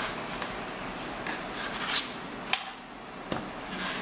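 A knife scrapes along the rim of a metal pan.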